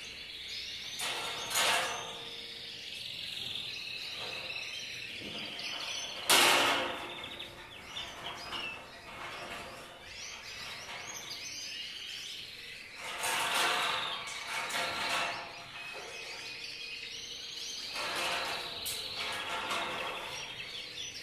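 Metal wire panels clatter and rattle as they are moved.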